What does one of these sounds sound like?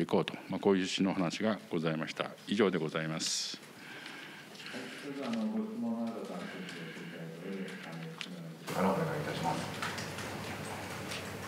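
A middle-aged man speaks steadily into a microphone.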